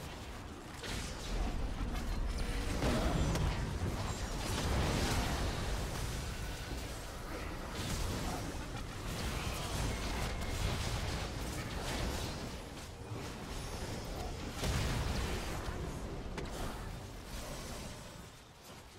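Video game magic spell blasts and combat effects crackle and boom.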